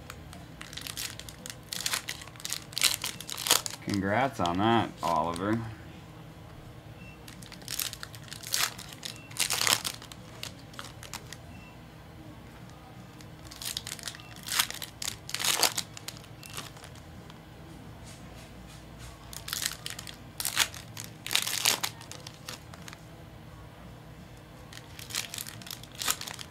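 Foil card packs crinkle and rustle as they are torn open.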